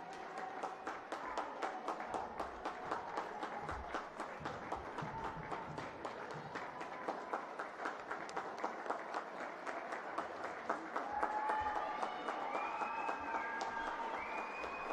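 Hands clap and slap repeatedly in a large echoing hall.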